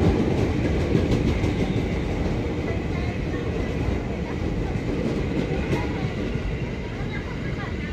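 An electric commuter train pulls away along a platform and fades.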